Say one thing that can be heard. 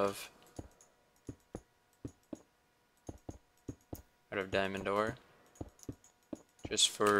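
Footsteps thud softly on stone.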